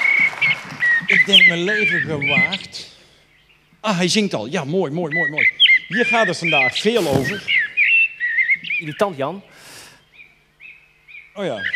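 An elderly man speaks calmly into a microphone over a loudspeaker.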